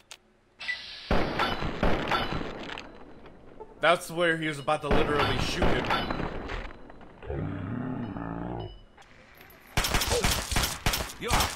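Gunshots ring out, loud and close.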